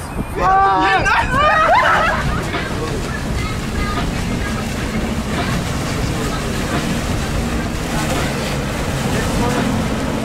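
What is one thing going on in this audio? A jet ski engine roars across the water.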